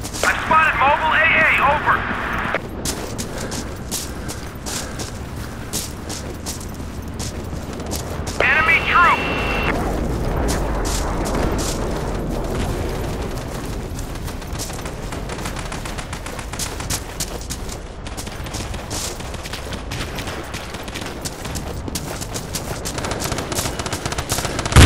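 Footsteps run steadily over grass and gravel.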